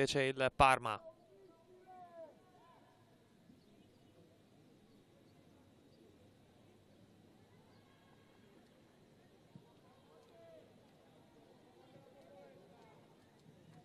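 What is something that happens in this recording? Women players call out faintly across an open field.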